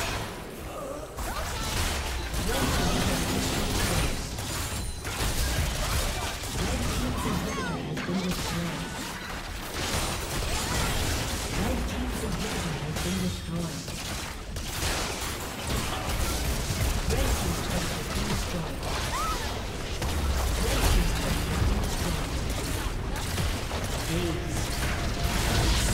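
Video game battle sound effects clash and burst rapidly.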